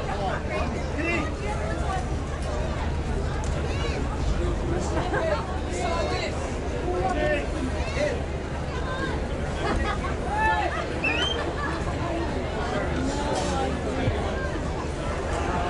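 A crowd of men and women chatters and calls out all around, outdoors.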